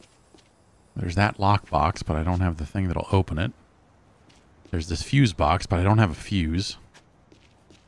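A man talks casually and close into a microphone.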